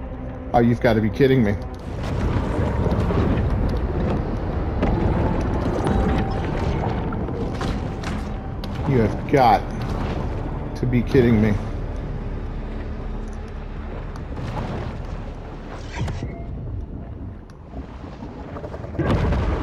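Deep underwater rumbling drones steadily.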